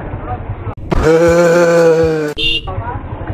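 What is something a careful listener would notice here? A motorcycle horn blares loudly for about a second.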